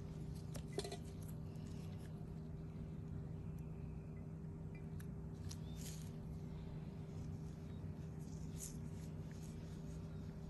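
Latex gloves and gauze rustle softly close by.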